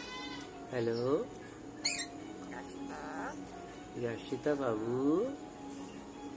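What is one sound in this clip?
A parrot squawks and chatters close by.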